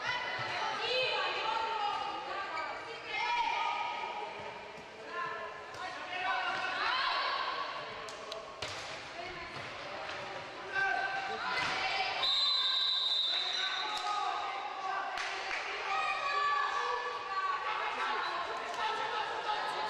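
Young women shout and call out across an echoing indoor hall.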